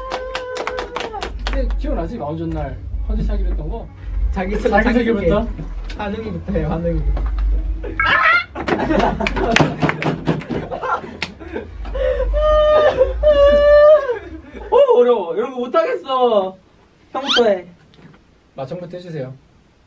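Young men talk and joke with animation close by.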